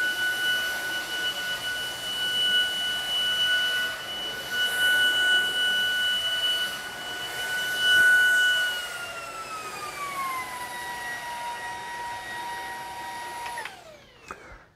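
A cordless vacuum cleaner whines steadily, then its pitch drops before it shuts off.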